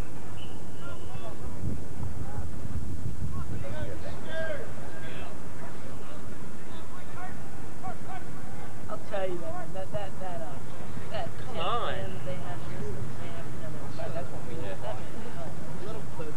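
Young men and women shout and call out across an open field.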